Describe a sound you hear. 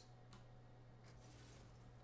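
A metal lever clunks as it is pulled.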